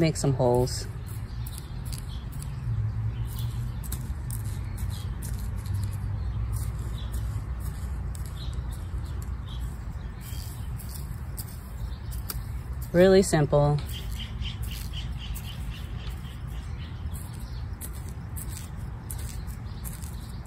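A small plastic scoop scrapes and digs into loose soil.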